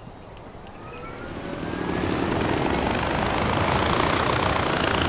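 Wind rushes loudly during a fast glide through the air.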